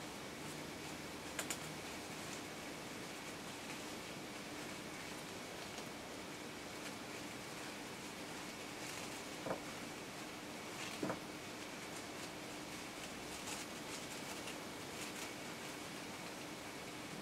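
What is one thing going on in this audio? Satin ribbon rustles softly between fingers.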